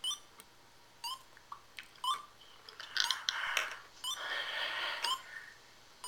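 A video game beeps as a timer counts down.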